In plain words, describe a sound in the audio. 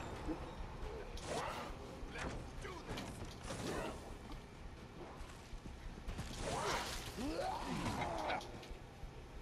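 A zombie growls and snarls up close.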